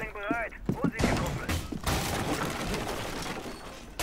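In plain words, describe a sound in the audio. Wooden boards crack and splinter as a barricade is torn down.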